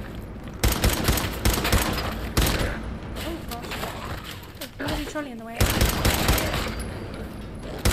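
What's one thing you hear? Gunshots fire in quick bursts, loud and close.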